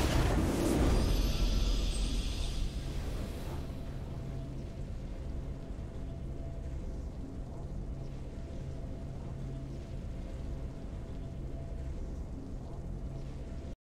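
Triumphant orchestral music plays steadily.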